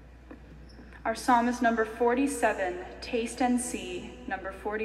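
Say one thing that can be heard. A young woman reads aloud through a microphone in a large echoing hall.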